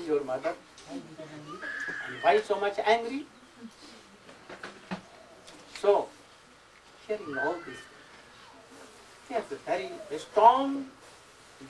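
An elderly man speaks calmly, with pauses.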